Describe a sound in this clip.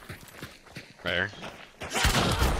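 A gun clicks and rattles as it is handled.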